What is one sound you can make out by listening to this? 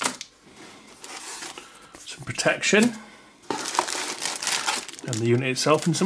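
Plastic wrapping crinkles and rustles as hands handle it.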